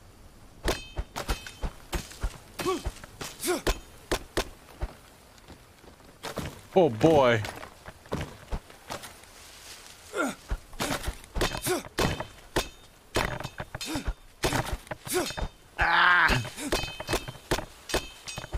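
Footsteps crunch on leaves and twigs.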